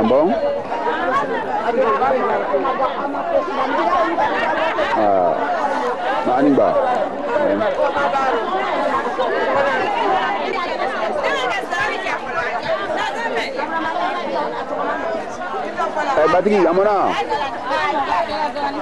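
A crowd of women talk and chatter loudly nearby.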